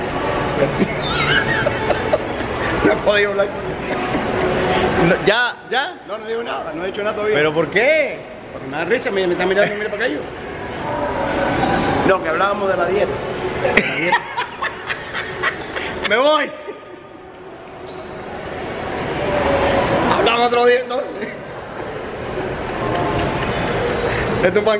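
A middle-aged man laughs heartily close by.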